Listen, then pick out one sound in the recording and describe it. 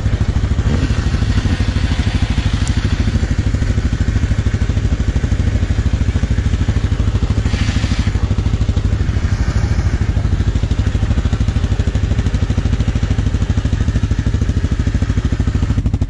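An engine idles with a steady, throbbing rumble close by.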